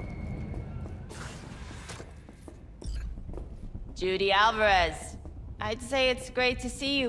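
A woman's footsteps tap on a hard floor.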